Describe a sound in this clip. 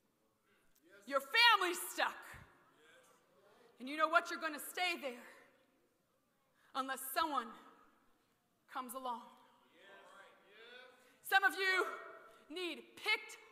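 A man preaches loudly with animation through a microphone in an echoing hall, in bursts with pauses.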